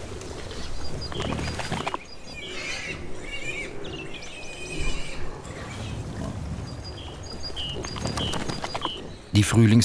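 Wild boar piglets squeal and grunt.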